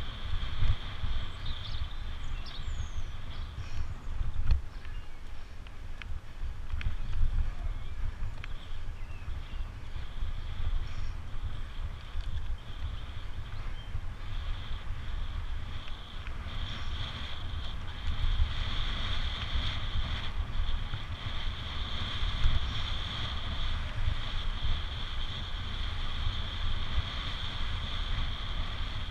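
Wind rushes and buffets loudly past a fast-moving bicycle.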